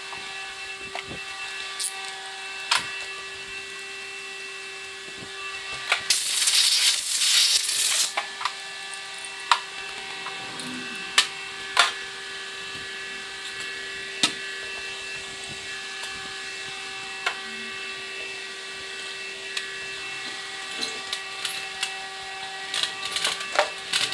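Metal engine parts clink and knock as they are handled.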